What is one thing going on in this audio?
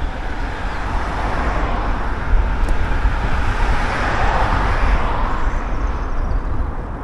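A van drives past close by with a rising and fading whoosh.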